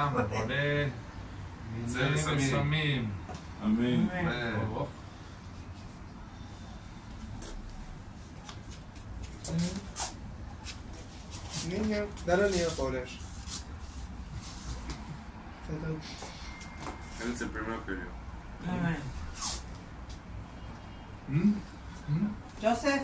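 Men and women talk and laugh together nearby.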